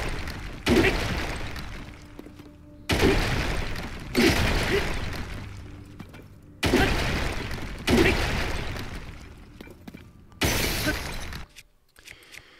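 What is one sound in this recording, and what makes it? A heavy hammer smashes into rock with loud crashing blows.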